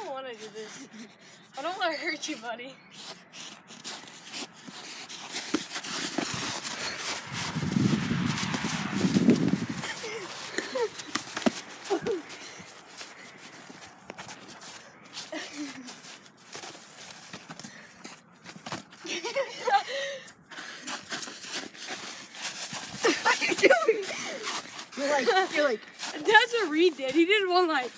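Young boys talk and laugh close by.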